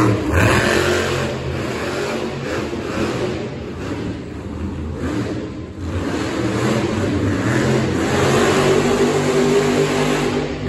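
A monster truck engine roars loudly in a large echoing arena.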